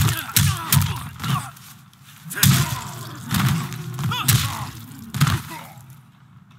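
Heavy blows land with loud crunching thuds.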